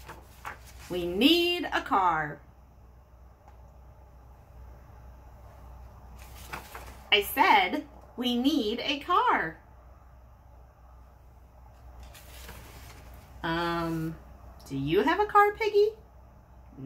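A woman reads aloud close by in an expressive, animated voice.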